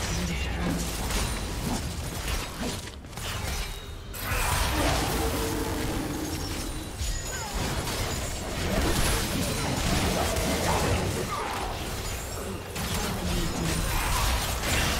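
Magic blasts and weapon hits clash rapidly in a battle.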